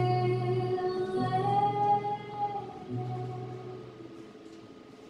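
A man sings long, steady notes.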